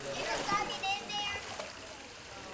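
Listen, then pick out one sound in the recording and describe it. A child shouts playfully nearby.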